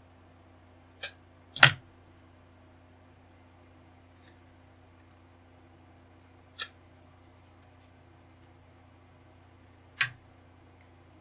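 Plastic model parts click and tap as a man handles them.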